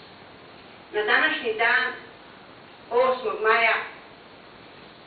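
An elderly woman speaks into a microphone in a large hall.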